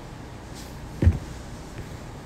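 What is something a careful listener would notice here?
A phone knocks as it is handled.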